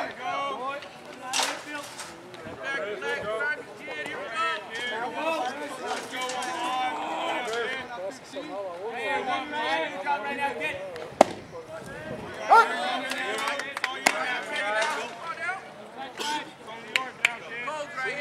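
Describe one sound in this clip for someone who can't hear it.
Young men shout and chatter nearby outdoors.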